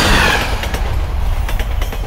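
A train rumbles across a steel bridge.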